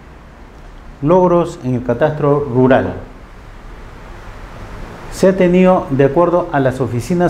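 An older man speaks calmly in an echoing room.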